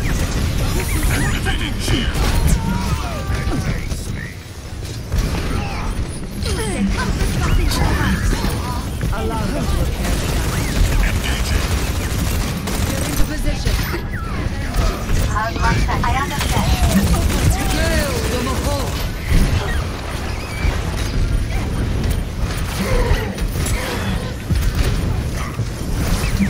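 Gunfire and blasts crackle in rapid bursts.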